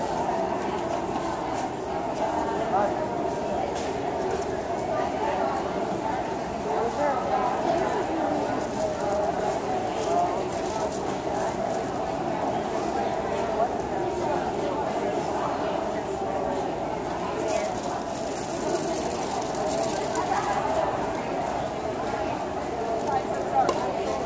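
A crowd of people murmurs and chatters in a large, echoing hall.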